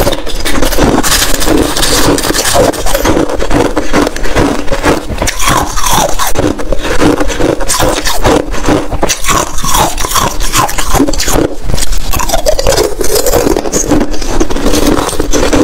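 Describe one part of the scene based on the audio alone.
Pieces of ice clink against a bowl.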